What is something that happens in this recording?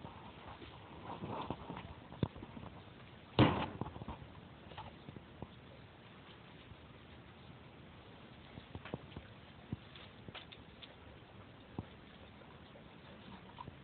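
Leaves rustle as a dog noses through plants.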